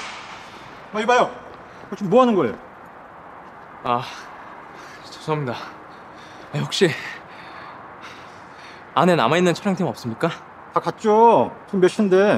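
A young man speaks in short, shaky outbursts, close by.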